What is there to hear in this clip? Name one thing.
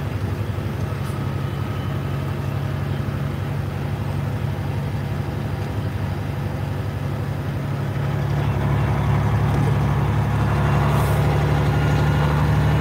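Tyres roll over a snowy road.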